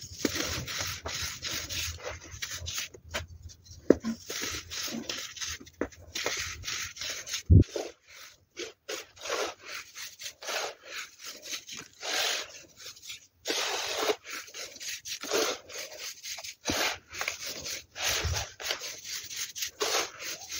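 Hands squeeze and crumble soft powdery sand with close, crisp crunching.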